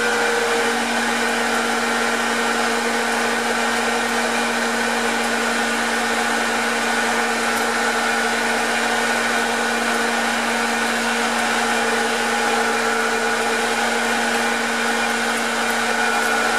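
A metal lathe hums steadily as it spins.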